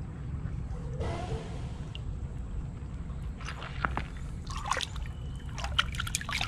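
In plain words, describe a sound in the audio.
A gloved hand splashes and stirs in shallow water.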